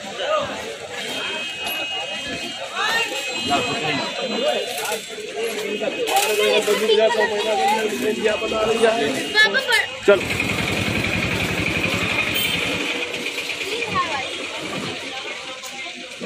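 A crowd of people chatters in a busy street market.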